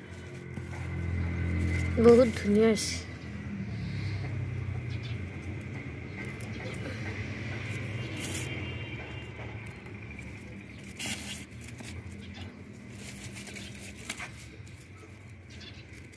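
Leafy plants rustle as a hand pulls at them.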